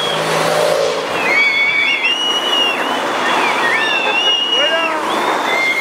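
Cars drive past close by.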